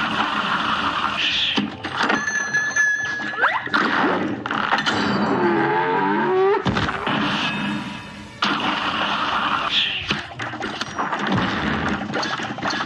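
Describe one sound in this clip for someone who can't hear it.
Small bursts crackle as shots hit a large creature.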